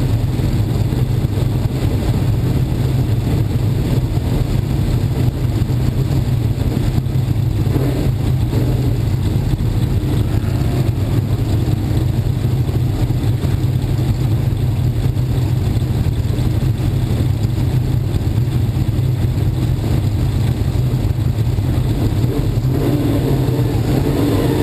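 A race car engine idles with a loud, steady, low rumble close by.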